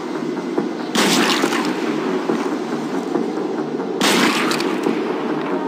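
A rifle fires a loud shot with a short echo.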